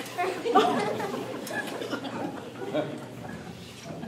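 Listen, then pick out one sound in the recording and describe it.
A young woman speaks on stage in a hall, heard from a distance.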